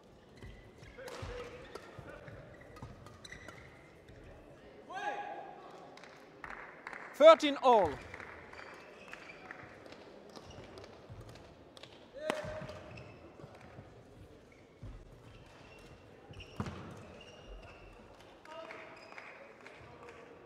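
Shoes squeak on a court floor.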